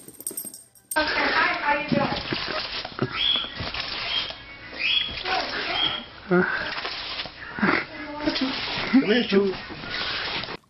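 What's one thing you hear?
A small dog barks and yaps excitedly close by.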